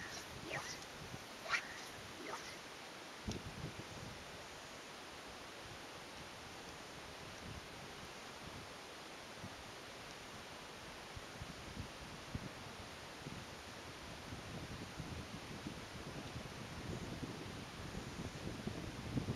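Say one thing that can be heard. Water laps gently around a wading man's legs.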